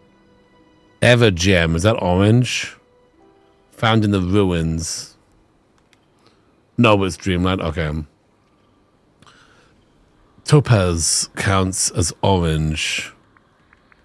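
A man speaks casually and animatedly into a close microphone.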